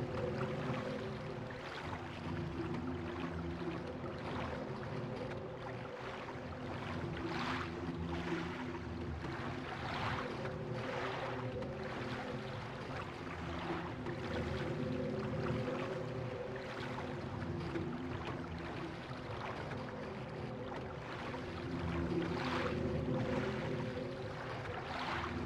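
Oars splash and swish through water in slow, even strokes.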